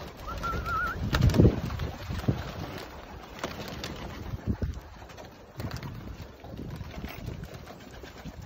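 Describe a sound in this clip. Pigeons flap their wings as they take off and land.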